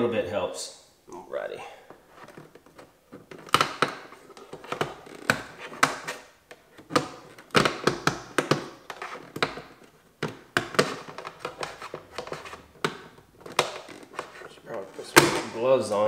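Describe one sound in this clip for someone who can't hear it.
A plastic pry tool clicks and scrapes against plastic trim.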